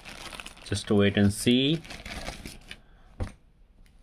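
Plastic wrapping crinkles and rustles as hands handle it.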